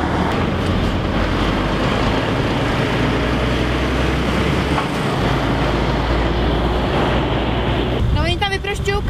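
Heavy trucks roar past close by.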